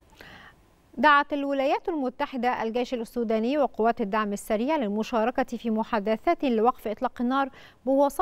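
A woman reads out the news calmly into a microphone, close by.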